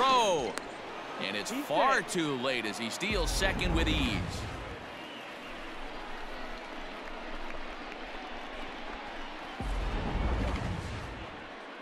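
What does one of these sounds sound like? A large crowd cheers and murmurs in an open stadium.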